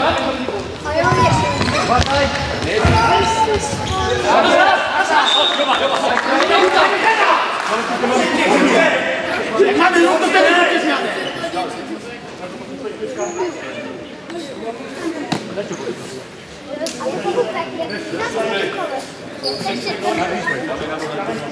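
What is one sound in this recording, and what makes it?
A ball thuds on a hard floor.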